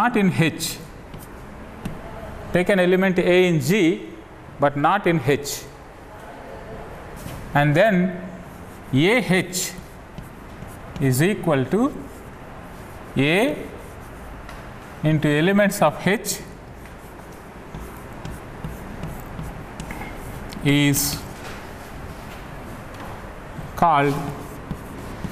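A man speaks slowly and calmly, with pauses.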